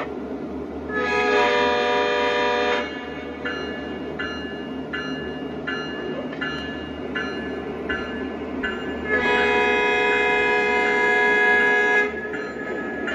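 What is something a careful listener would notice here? A model train horn blows two long blasts.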